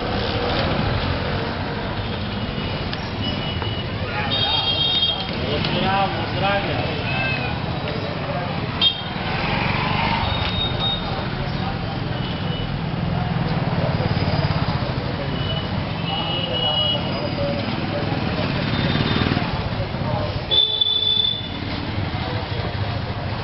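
Motorcycle and auto-rickshaw engines rumble steadily on a busy street.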